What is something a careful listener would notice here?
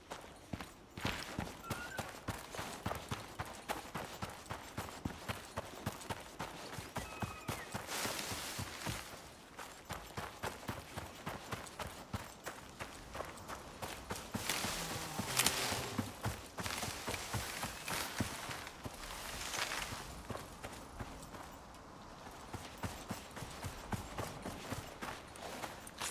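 Footsteps crunch steadily through grass and over dirt.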